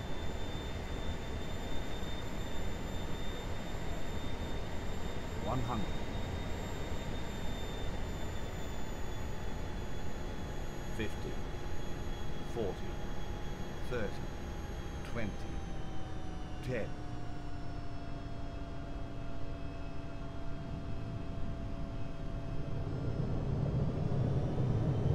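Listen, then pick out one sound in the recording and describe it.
A jet engine whines steadily close by, its pitch slowly sinking.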